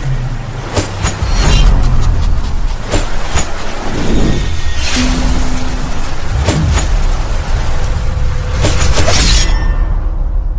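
Energy swords clash and hum in a fight.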